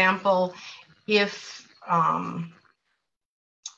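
A woman speaks with animation through a microphone on an online call.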